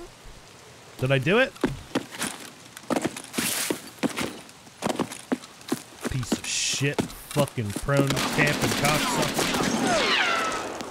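Footsteps crunch on gravel.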